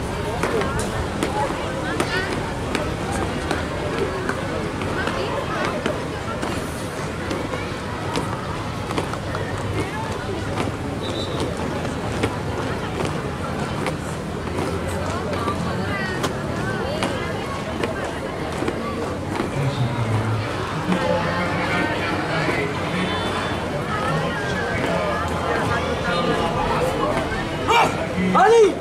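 Many shoes stamp on pavement in marching step.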